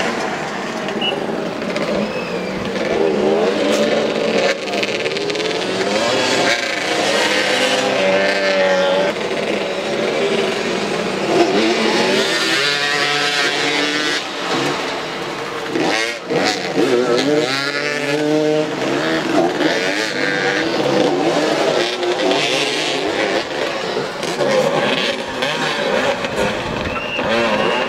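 Motorcycle engines rev and whine as bikes race around.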